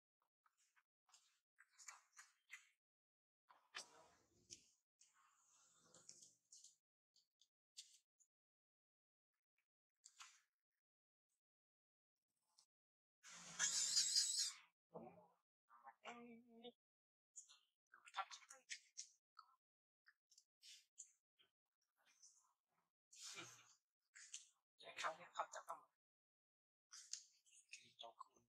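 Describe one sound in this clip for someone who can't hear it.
A baby monkey squeals and cries in short bursts.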